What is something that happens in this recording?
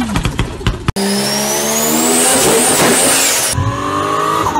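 A car engine revs hard and loud.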